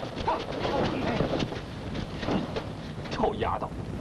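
A man speaks loudly.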